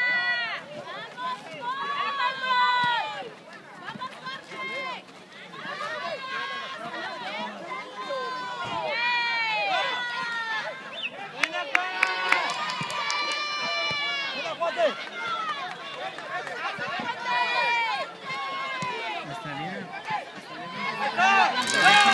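A crowd of young spectators shouts and cheers loudly outdoors.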